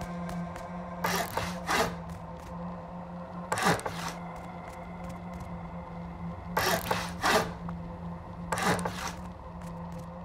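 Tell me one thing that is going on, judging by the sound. Heavy building blocks slam into place with short, crunching thuds.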